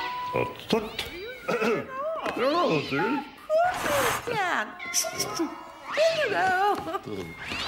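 Several cats meow loudly.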